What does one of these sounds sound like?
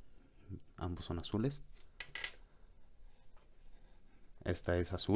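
Small plastic pen parts click softly as they are handled.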